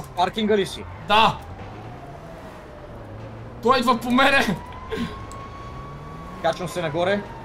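A young man talks with animation into a microphone, laughing at times.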